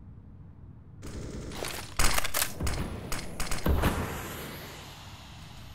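Rifle gunfire rattles in quick, loud bursts.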